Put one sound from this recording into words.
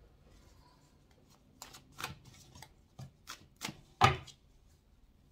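A deck of cards riffles and snaps in hands.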